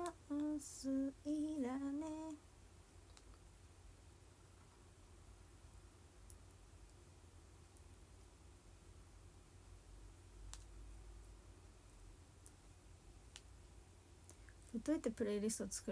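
A young woman speaks softly and brightly close to a microphone.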